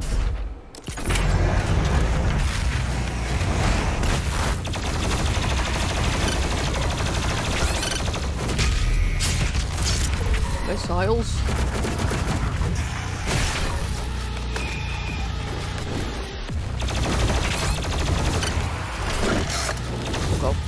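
Explosions blast loudly.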